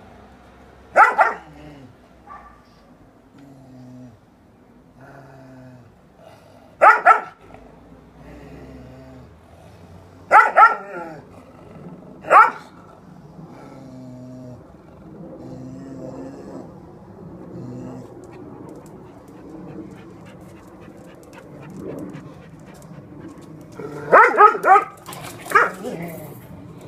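A dog barks sharply in short bursts.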